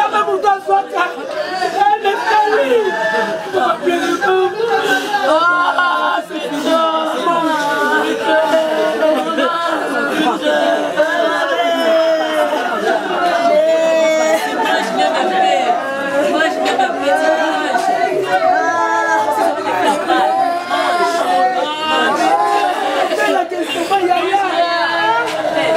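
A young woman sobs and cries out with emotion.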